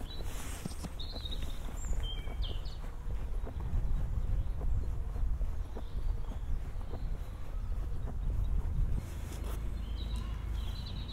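Footsteps tread steadily on pavement.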